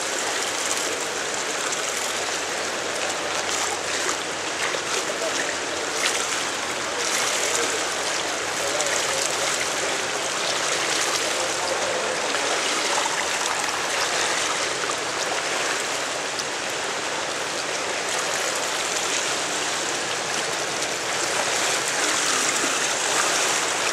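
Water rushes and bubbles steadily, heard from underwater.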